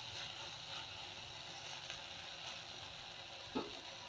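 A wooden spatula scrapes and stirs food in a pan.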